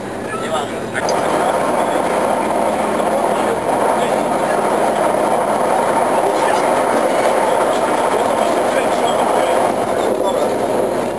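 A train roars louder as it crosses a metal bridge.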